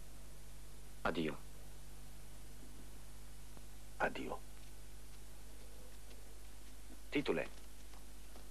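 A younger man speaks briefly in reply.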